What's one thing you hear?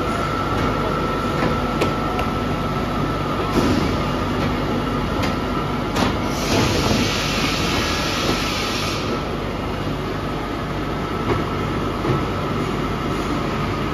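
A wooden board rolls through the machine with clunks.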